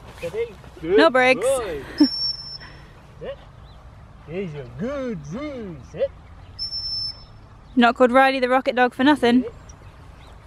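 A dog whines and yelps excitedly close by.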